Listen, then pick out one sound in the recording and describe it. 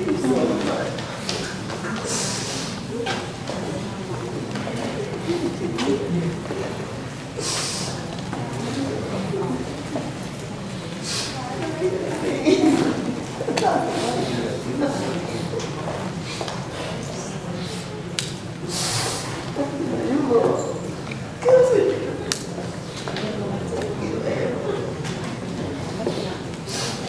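A crowd of men and women murmurs quietly in a room.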